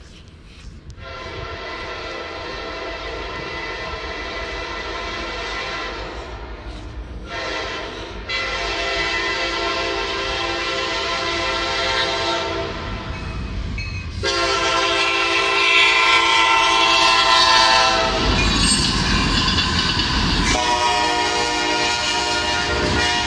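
A train horn blares loudly in long blasts, close by.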